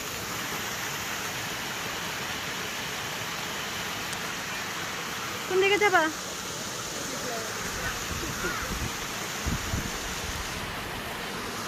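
Water splashes steadily down a rocky waterfall.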